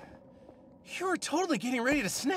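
A man speaks sharply.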